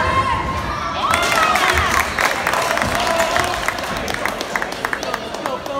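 A small crowd cheers after a basketball shot.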